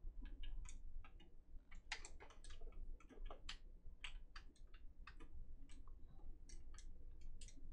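A woman speaks softly and closely.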